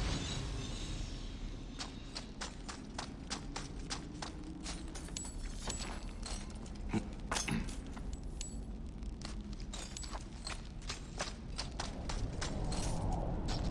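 Footsteps clink and clatter through piles of metal treasure.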